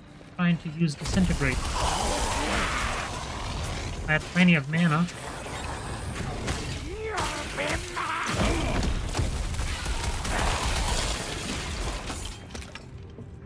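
Spells crackle and blast loudly in a fast fight.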